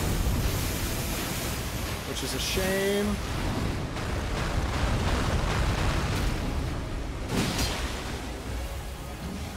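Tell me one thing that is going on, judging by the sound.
A man talks with animation through a microphone.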